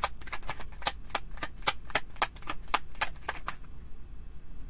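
Cards riffle and flick rapidly as they are shuffled.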